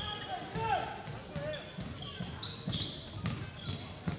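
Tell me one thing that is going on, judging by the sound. A basketball bounces on a hard wooden floor in an echoing gym.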